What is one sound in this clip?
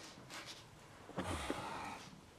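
A man sits down heavily on a soft sofa.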